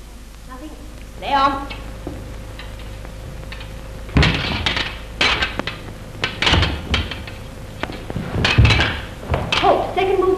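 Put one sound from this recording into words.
Fencing blades click and clash against each other.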